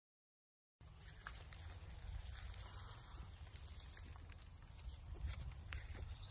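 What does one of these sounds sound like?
A small dog scratches and digs in dry dirt.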